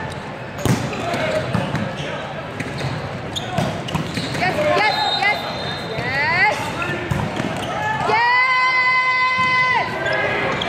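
Young women call out to each other across the court.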